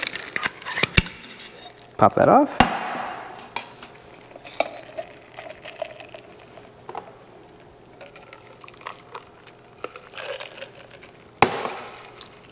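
Metal and glass clink on a table.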